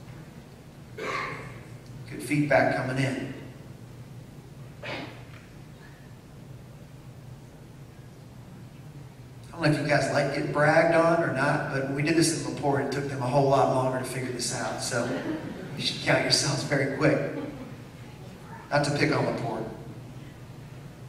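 A man speaks into a microphone over loudspeakers, calmly addressing a room, with pauses.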